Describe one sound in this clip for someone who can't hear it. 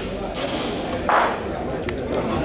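Bowling balls knock together with a sharp clack.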